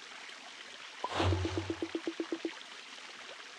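A short game chime plays with a quick run of repeating notes.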